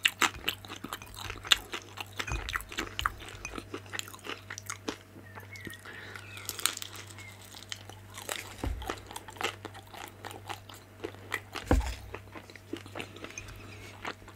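A dumpling dips and squishes into sauce.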